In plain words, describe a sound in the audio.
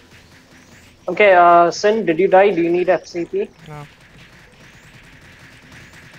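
Magic spells crackle and whoosh in quick bursts.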